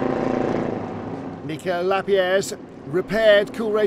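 A race car engine drones past.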